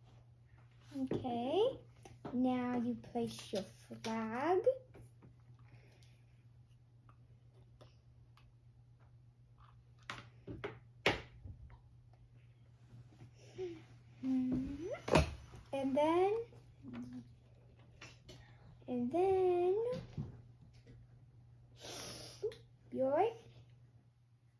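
A little girl talks in a high voice close by.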